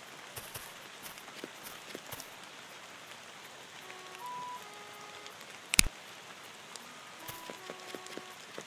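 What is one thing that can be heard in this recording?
Light footsteps patter quickly on the ground.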